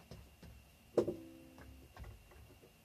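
A ukulele's strings ring out briefly when bumped.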